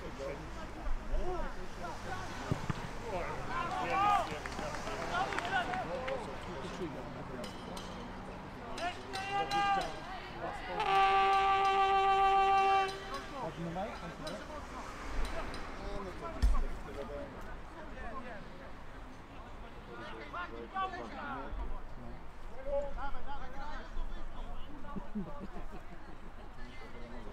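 Men shout across an open field.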